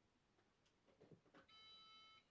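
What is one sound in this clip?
A computer's power button clicks.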